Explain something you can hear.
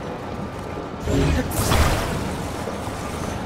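A whoosh sweeps up with a deep thud.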